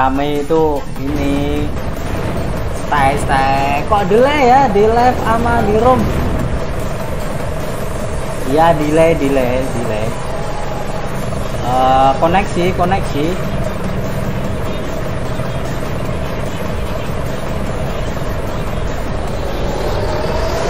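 A bus engine idles with a steady hum.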